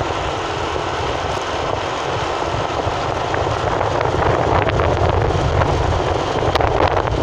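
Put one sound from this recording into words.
Car tyres rumble on a paved road.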